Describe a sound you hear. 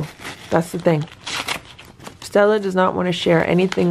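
An envelope tears open.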